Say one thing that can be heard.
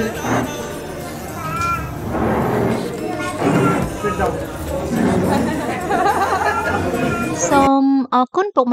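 A crowd of men and women chatter and murmur nearby in a busy room.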